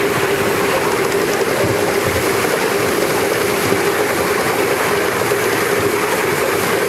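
Steel wheels clatter and rumble on the rails.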